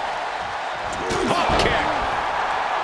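A body slams hard onto a wrestling mat with a loud thud.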